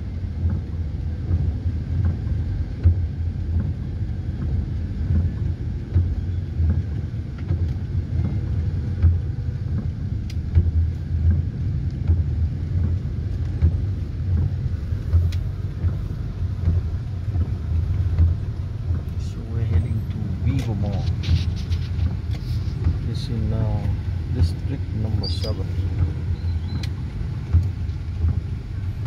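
A vehicle engine rumbles steadily from inside the cabin.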